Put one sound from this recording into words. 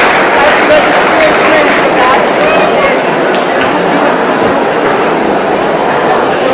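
A large audience murmurs and chatters in an echoing hall.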